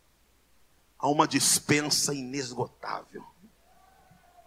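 A man speaks with animation into a microphone, heard through loudspeakers in a large echoing hall.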